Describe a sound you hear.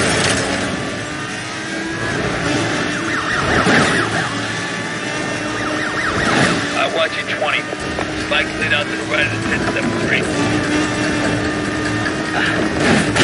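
A car engine roars steadily at high speed.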